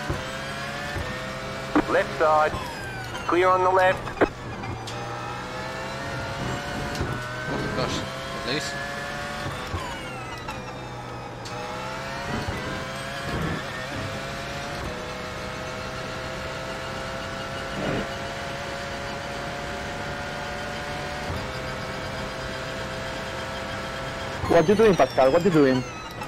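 A racing car engine roars, rising and falling in pitch as the gears change.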